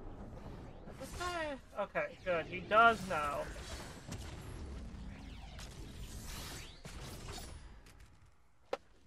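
Fighting sounds from a video game whoosh and crash.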